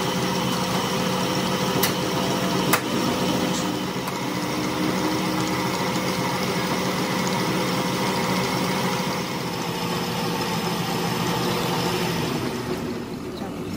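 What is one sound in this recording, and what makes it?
A cutting tool scrapes against spinning metal.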